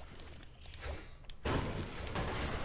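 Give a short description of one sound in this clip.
A pickaxe strikes a metal garage door.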